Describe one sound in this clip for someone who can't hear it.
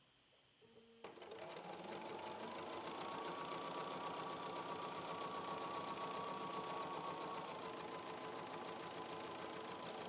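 A sewing machine whirs steadily.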